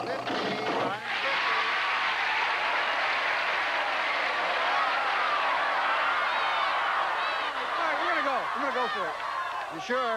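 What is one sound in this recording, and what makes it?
A large studio audience cheers and applauds loudly.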